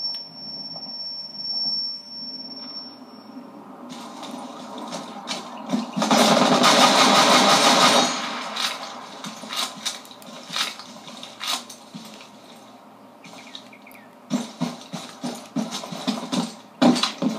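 Footsteps thud steadily on hard ground.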